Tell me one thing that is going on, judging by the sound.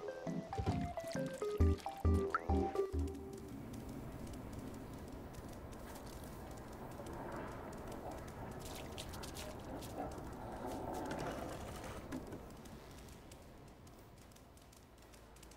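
A cat's paws patter softly over hard ground.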